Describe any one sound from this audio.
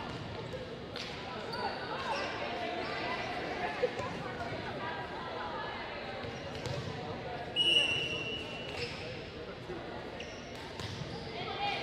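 A volleyball is struck with a sharp slap.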